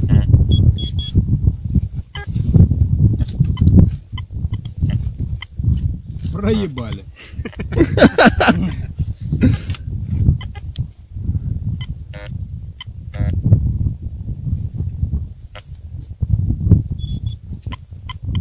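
A metal detector beeps in short high tones.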